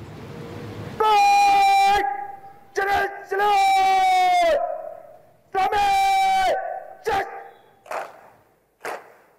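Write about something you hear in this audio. A man shouts long drawn-out drill commands outdoors.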